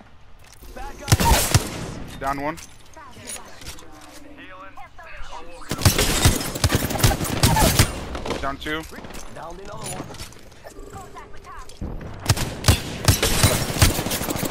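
Rapid gunfire bursts out in loud, sharp volleys.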